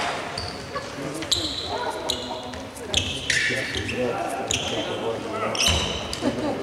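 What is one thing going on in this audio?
Players call out across an echoing hall.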